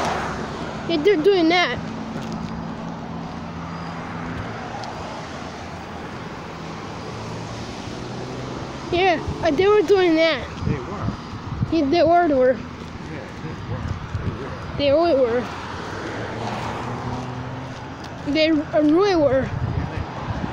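A young woman speaks close by in a squeaky, playful voice.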